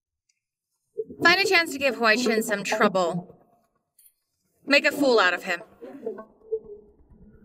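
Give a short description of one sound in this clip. A young woman speaks quietly and with scorn, close by.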